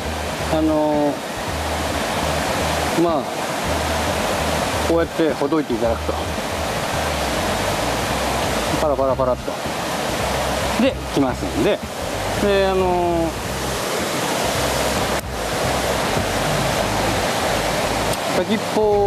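Water rushes steadily over a weir nearby.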